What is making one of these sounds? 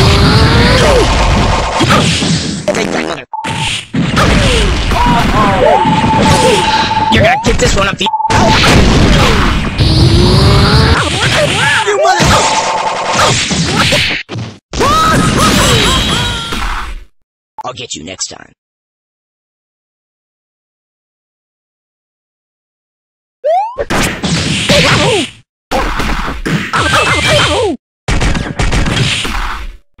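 Energy blasts whoosh and crackle in a fighting game.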